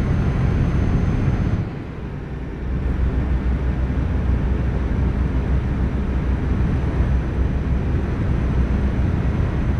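Tyres roll along a road.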